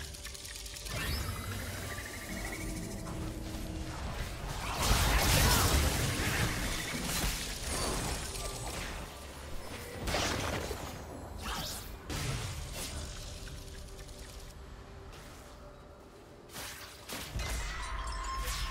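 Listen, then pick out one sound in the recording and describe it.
Game spells burst and crackle in a fight.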